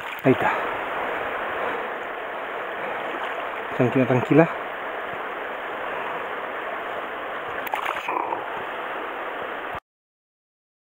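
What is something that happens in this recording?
Shallow water laps steadily against a stony shore close by.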